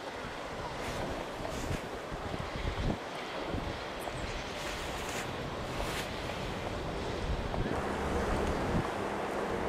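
A wide river flows quietly.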